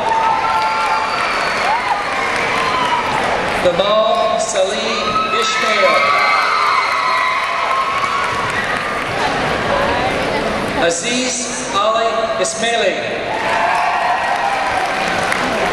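A crowd cheers and whoops in a large echoing hall.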